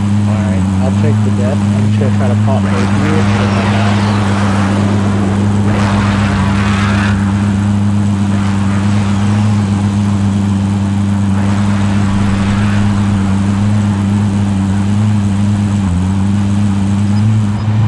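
Tyres rumble on the road.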